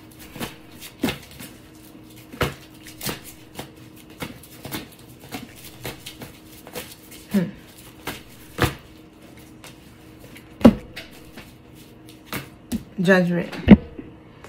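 Cards tap down on a hard tabletop.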